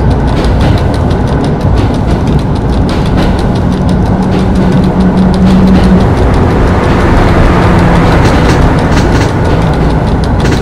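Train wheels clatter over rail joints.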